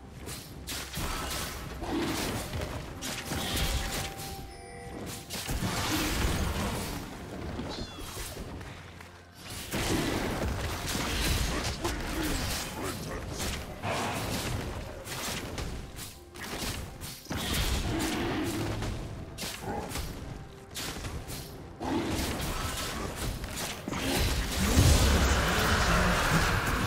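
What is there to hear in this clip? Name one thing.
Magic blasts crackle and thump in a fast fight.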